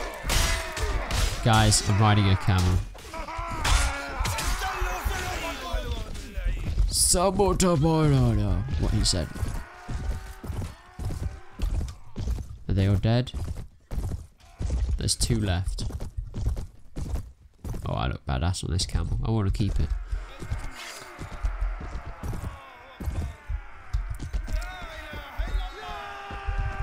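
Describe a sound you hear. Horse hooves thud at a gallop.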